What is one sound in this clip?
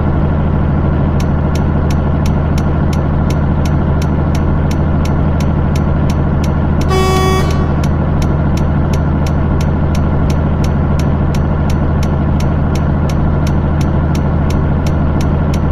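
A turn signal ticks quickly and evenly.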